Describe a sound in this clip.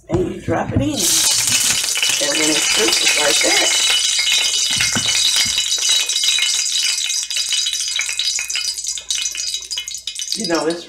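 Fat sizzles and crackles steadily in a hot frying pan.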